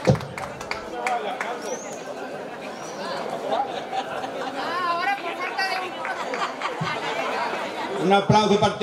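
Men talk casually nearby.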